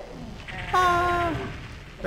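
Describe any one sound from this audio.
A plasma gun fires with a buzzing zap.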